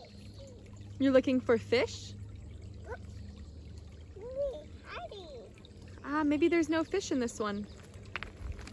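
A young child babbles and squeals nearby.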